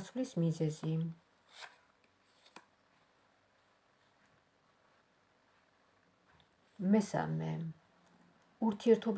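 Playing cards rustle and slap softly as they are shuffled by hand.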